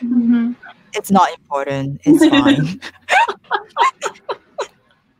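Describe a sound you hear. Several women laugh over an online call.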